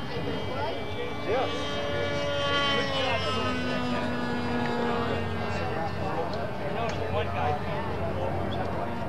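Several men talk among themselves outdoors.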